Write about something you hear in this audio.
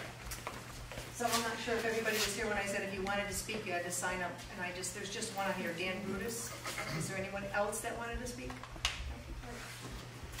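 A woman speaks clearly from across the room.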